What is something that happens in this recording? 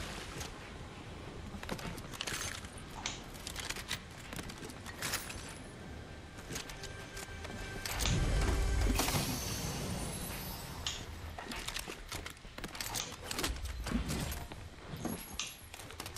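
Game chests open with bright chiming sounds.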